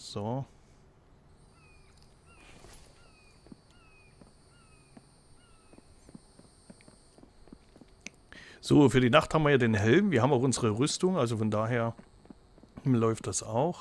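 Footsteps fall on a paved road.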